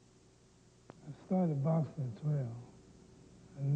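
An older man speaks slowly and quietly.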